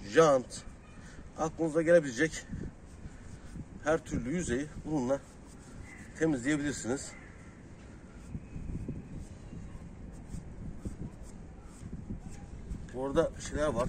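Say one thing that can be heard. A stiff brush scrubs a wet rubber tyre.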